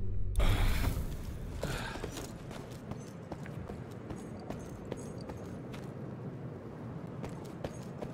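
Footsteps scuff on a stone floor.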